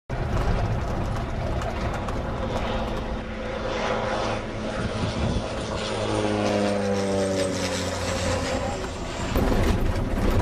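A small propeller plane drones overhead, its engine getting louder as it passes and then falling in pitch.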